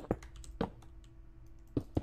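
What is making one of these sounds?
Footsteps tap on a hard surface.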